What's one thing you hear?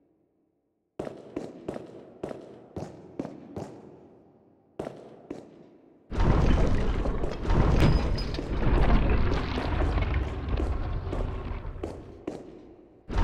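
Footsteps echo across a hard floor in a large hall.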